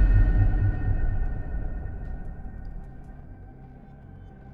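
A deep game sound effect rumbles and fades away.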